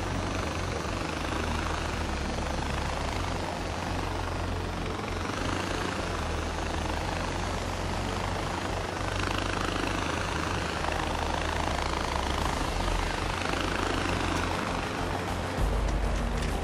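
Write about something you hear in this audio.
A cable car hums and rattles steadily along its cable.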